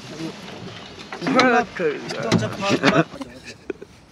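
A man speaks cheerfully, close by.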